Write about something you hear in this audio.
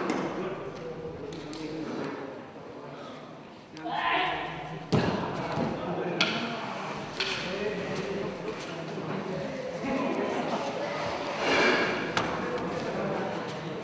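Men's voices murmur and call out in an echoing hall.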